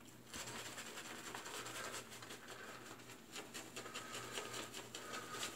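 Fingers rub shaving foam over stubble with a soft, wet scratching.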